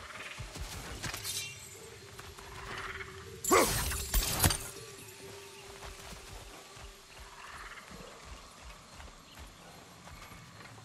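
Heavy footsteps thud on soft forest ground.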